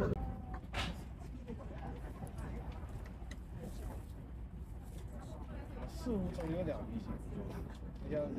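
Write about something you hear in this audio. A train rumbles steadily.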